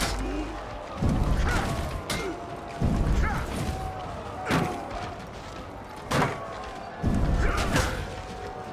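Heavy thuds and impacts boom.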